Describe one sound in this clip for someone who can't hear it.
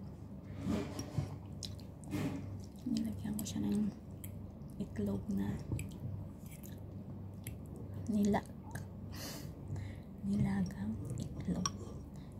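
A fork scrapes and clinks against a bowl.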